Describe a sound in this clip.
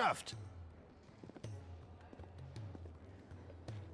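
Footsteps tap on a stone floor in a large echoing hall.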